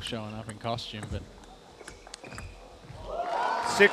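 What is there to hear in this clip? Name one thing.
A table tennis ball clicks back and forth off paddles and a table.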